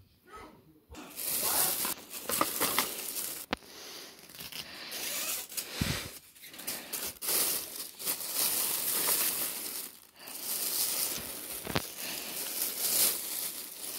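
A plastic bag rustles and crinkles as a hand rummages through it.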